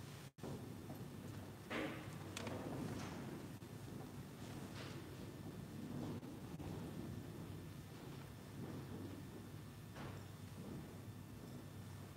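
Footsteps shuffle slowly across a wooden floor in a quiet, echoing hall.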